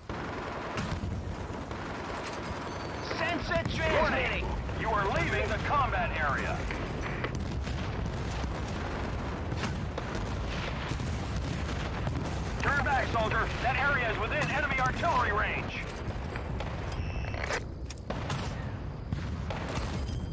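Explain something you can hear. Rifle shots crack in short bursts.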